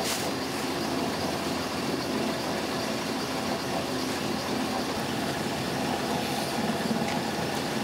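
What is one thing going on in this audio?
Clay squelches as it is pushed into a machine.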